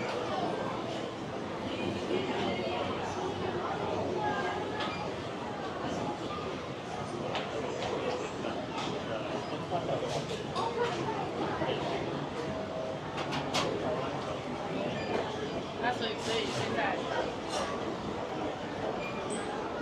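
A crowd murmurs steadily in a busy indoor hall.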